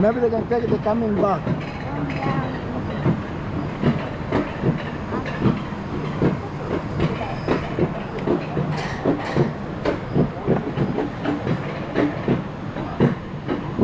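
A coaster cart rattles and clatters along a metal track.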